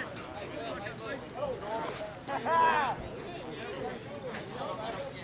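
A group of men and women chatter and call out in the distance outdoors.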